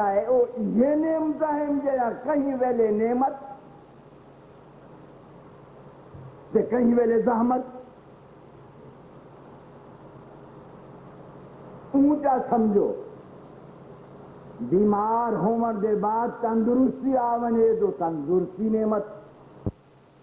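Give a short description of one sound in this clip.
An elderly man recites in a chanting voice through a microphone, in bursts with pauses.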